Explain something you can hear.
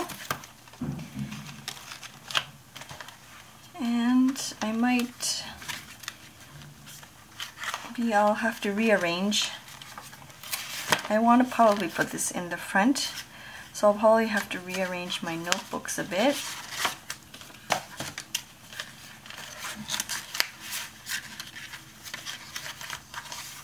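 Paper pages rustle and flip close by.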